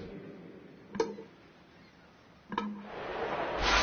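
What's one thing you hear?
Short menu chimes sound twice.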